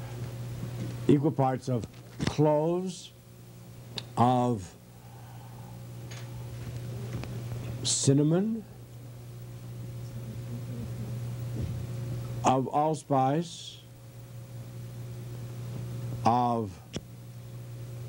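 An elderly man speaks slowly and calmly, close to a microphone, with long pauses.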